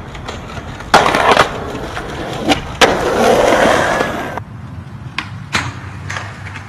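A skateboard clacks sharply against concrete.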